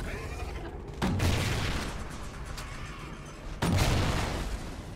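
Explosions boom with a deep rumble.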